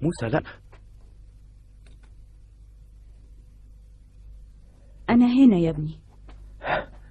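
An elderly woman speaks quietly nearby.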